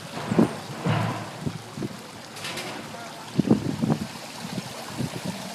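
Small hands slap and splash in shallow water.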